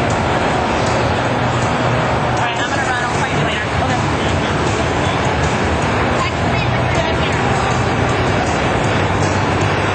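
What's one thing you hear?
An electric guitar plays loud, distorted rock riffs through an amplifier.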